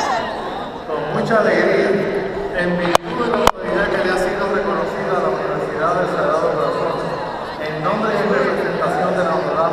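A crowd of young people chatters loudly nearby in a large echoing hall.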